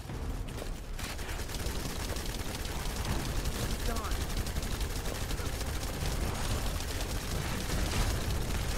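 Gunshots fire rapidly.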